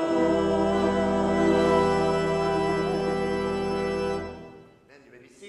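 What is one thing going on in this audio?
A small group of adults sings together through a microphone.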